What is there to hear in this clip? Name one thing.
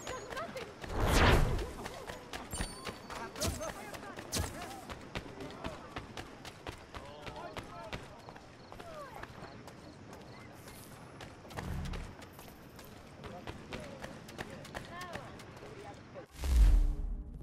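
Footsteps run quickly over cobblestones.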